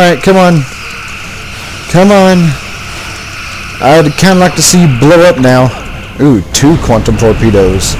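Energy weapons fire in short, sharp zaps.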